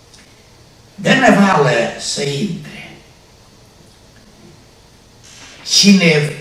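An elderly man speaks with animation through a microphone, pausing between phrases.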